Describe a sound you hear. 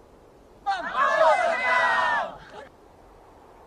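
A group of young people shout together in a loud cheer outdoors.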